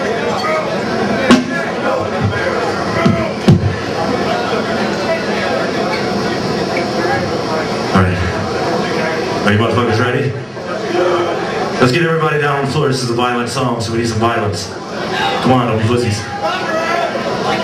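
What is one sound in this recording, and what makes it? A metal band plays loudly with distorted guitars and pounding drums, heard live in a large echoing hall.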